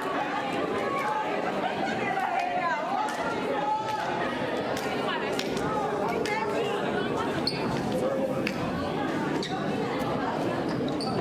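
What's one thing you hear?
A crowd of young people chatters in a large echoing gym.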